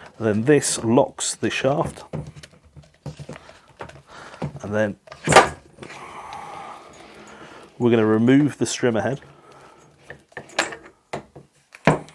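Plastic parts click and knock as they are fitted together.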